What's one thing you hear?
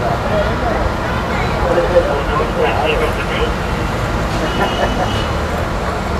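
A woman talks quietly on a phone nearby.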